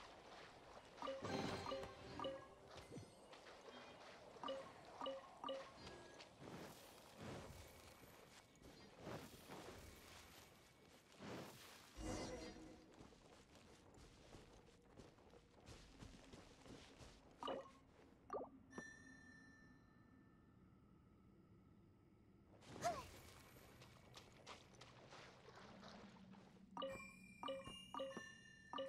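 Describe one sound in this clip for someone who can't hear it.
Bright magical chimes ring out in quick bursts.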